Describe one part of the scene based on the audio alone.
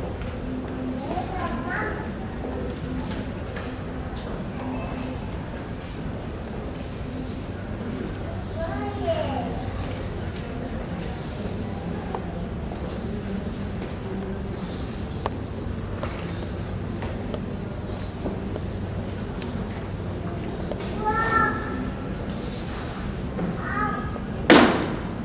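A man sings.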